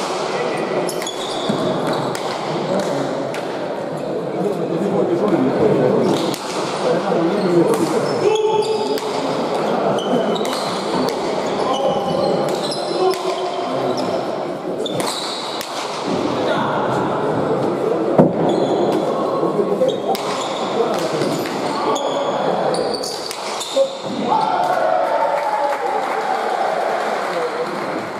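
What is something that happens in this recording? Shoes squeak sharply on a smooth floor.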